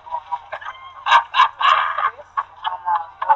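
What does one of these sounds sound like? A man laughs loudly close by.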